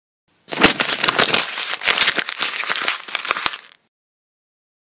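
Paper crinkles and crackles as it is unfolded.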